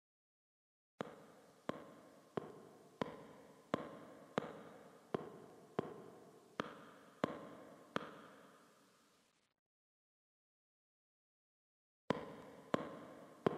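Slow footsteps echo on a hard floor in a reverberant hallway.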